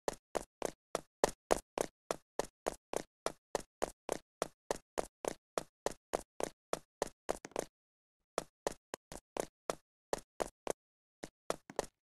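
Quick, light footsteps patter at an even pace.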